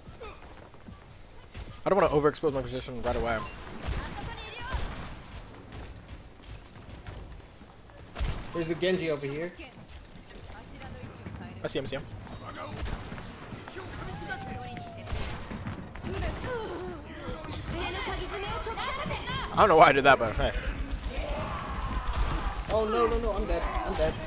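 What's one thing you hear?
Gunshots crack in quick bursts from a game.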